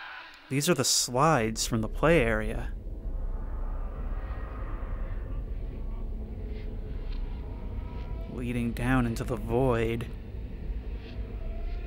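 A body slides down a long, echoing chute with a low rumble.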